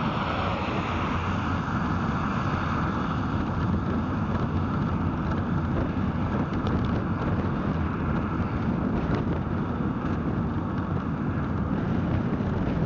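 Wind rushes loudly past the car.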